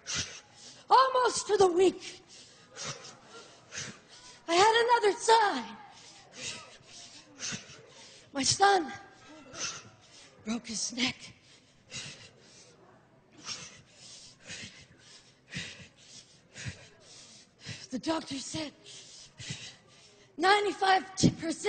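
A woman shouts with great emotion into a microphone, heard through loudspeakers in a large hall.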